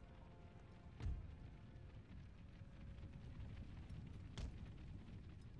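Cannons fire in the distance with deep booms.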